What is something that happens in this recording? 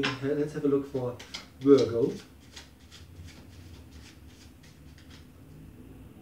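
A man shuffles small cards in his hands.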